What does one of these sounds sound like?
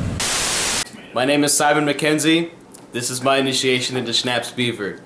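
Another young man speaks cheerfully close to the microphone.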